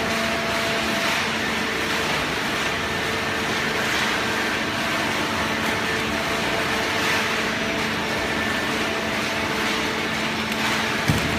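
Industrial machinery hums and rumbles steadily in a large echoing hall.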